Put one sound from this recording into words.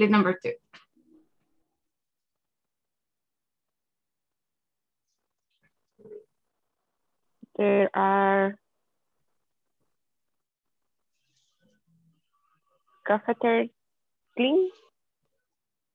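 A young woman speaks in short phrases over an online call, with long pauses.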